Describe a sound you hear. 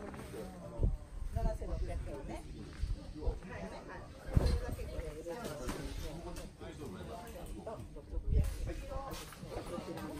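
Several people talk nearby in a low murmur.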